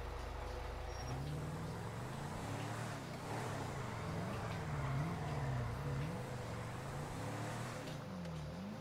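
A car engine revs up and down as the car drives.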